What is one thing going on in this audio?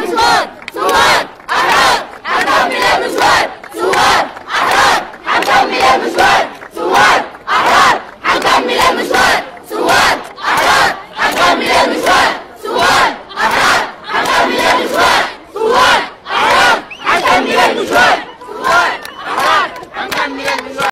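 A crowd of men and women chants loudly in rhythm outdoors.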